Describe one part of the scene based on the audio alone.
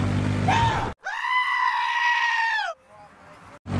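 A sheep bleats loudly.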